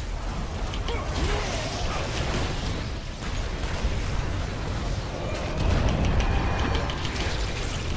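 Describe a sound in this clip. Game battle sounds of blasts, zaps and clashing effects ring out.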